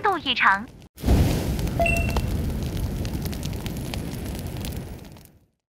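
Flames roar and crackle loudly.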